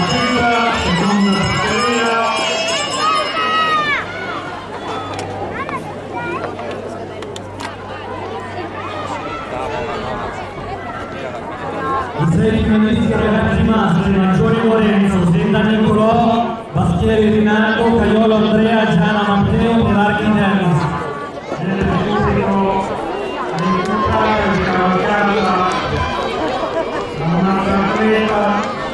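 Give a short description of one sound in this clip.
Inline skates roll and click on asphalt as racers sprint past.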